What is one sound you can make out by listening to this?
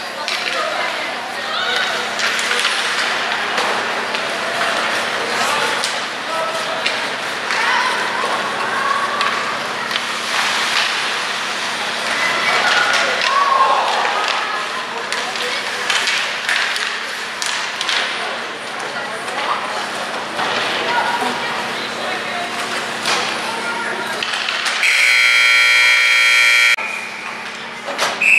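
Hockey sticks clack against a puck and each other.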